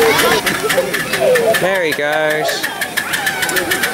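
Steam hisses from a small locomotive.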